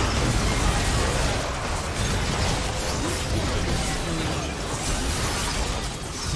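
Magic blasts and spell impacts crackle and boom in a busy fight.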